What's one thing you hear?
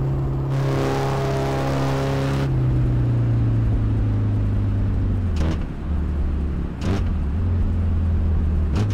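A car engine hums steadily and drops in pitch as the car slows.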